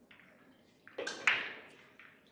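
A cue strikes a pool ball.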